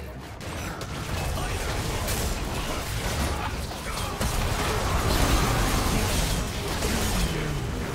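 Game spell effects blast, whoosh and crackle during a fight.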